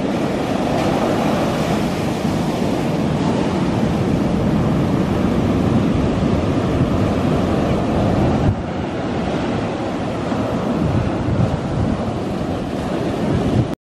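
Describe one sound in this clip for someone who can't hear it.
Foamy water hisses as it washes up the sand.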